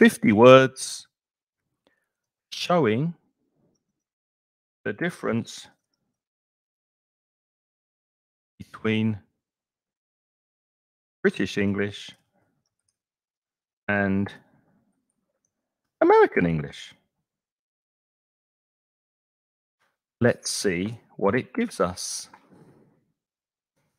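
An older man speaks calmly in short phrases with pauses, close to a microphone.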